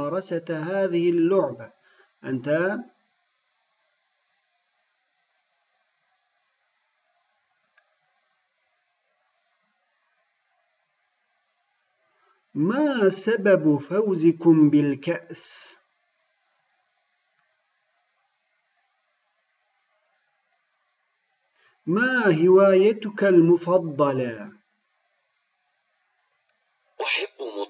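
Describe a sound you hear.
A man reads aloud slowly and clearly through a microphone, pausing between lines.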